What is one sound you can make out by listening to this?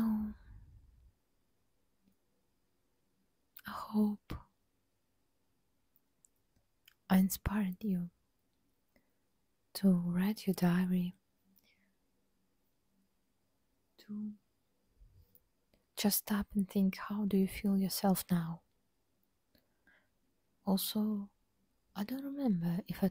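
A young woman whispers softly and closely into a microphone, in short bursts.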